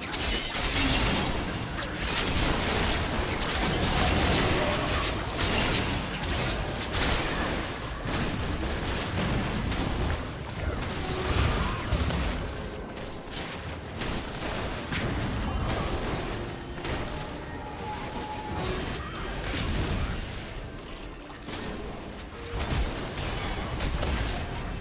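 Game spells and attacks crackle and burst in quick succession.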